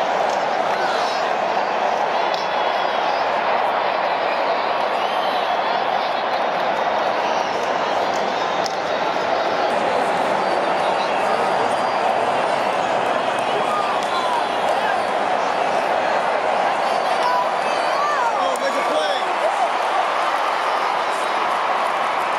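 A large stadium crowd murmurs and chatters steadily all around.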